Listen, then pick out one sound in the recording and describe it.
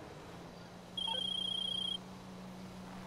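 A phone rings briefly.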